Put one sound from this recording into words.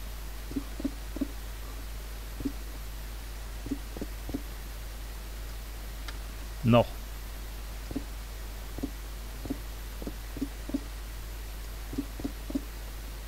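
Footsteps thud softly on stone in a steady walking rhythm.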